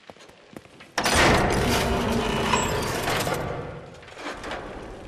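An electric machine buzzes and crackles loudly.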